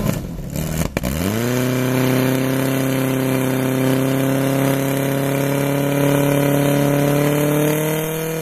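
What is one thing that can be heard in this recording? A pump engine revs up and roars, its pitch slowly rising.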